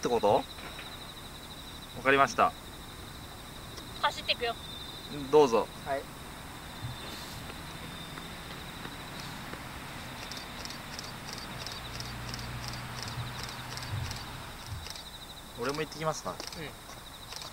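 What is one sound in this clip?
A young woman talks brightly nearby, outdoors.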